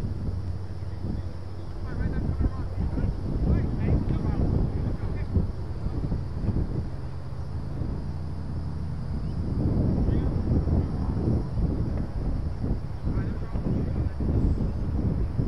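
Wind gusts outdoors, rumbling steadily.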